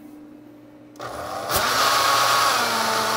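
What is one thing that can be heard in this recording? A blender motor runs with a loud whir.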